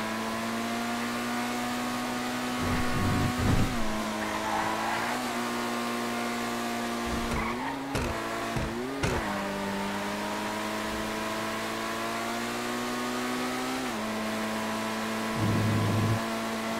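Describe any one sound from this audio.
A sports car engine hums steadily at high speed, its pitch dipping and rising with gear shifts.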